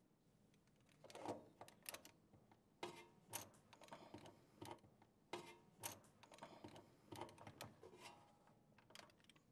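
A metal wrench scrapes and clicks against a nut.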